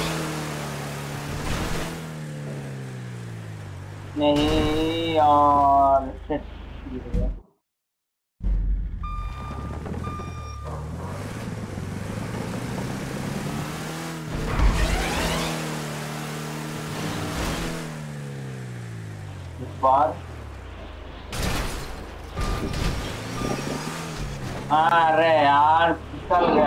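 A truck engine revs and drones, rising and falling in pitch.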